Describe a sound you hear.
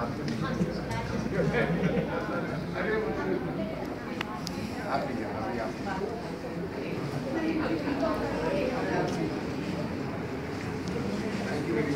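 Several men and women chatter close by in an echoing hall.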